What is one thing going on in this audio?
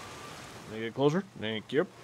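Water splashes around a swimmer.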